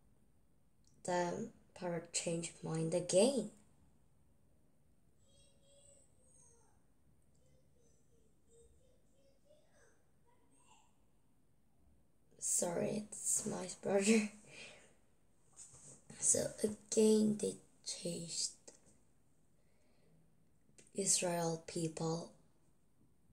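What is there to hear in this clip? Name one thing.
A young girl reads aloud slowly in short bursts, heard through an online call.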